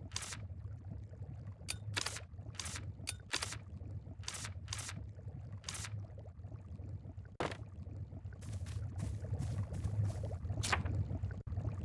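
Short soft menu blips sound as a cursor moves between items.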